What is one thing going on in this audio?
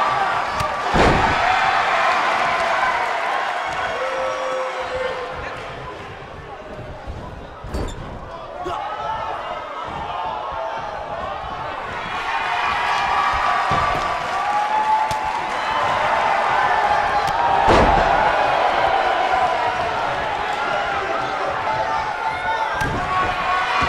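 Heavy bodies thud hard onto a springy mat.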